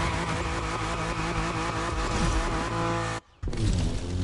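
Tyres screech in a drift.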